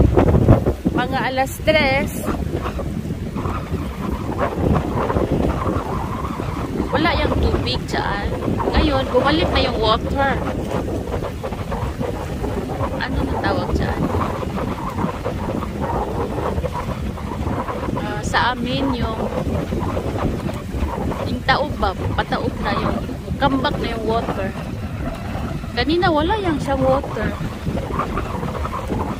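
Water laps gently against rocks at the shore.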